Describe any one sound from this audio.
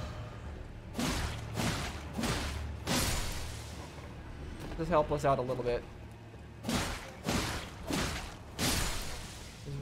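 Sword blows strike in quick, sharp hits.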